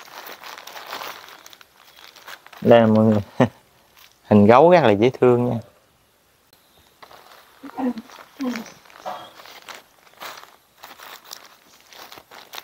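Plastic packaging rustles and crinkles in hands.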